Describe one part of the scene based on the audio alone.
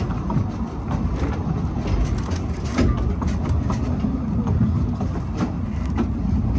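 A small train rumbles steadily along the track.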